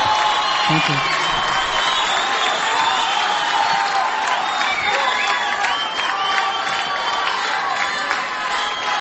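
A large crowd cheers and whistles loudly in a big echoing hall.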